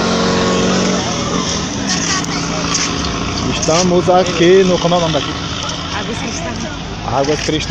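A crowd chatters in the distance outdoors.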